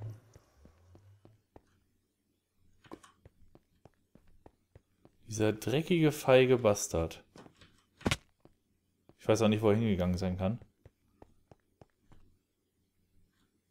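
Footsteps tap softly on stone.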